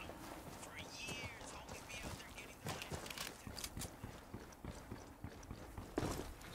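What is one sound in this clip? Boots crunch on snow with quick footsteps.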